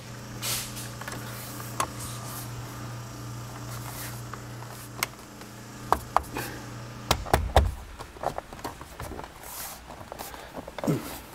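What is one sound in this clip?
Rubber window trim squeaks and clicks as hands press it into a car door frame.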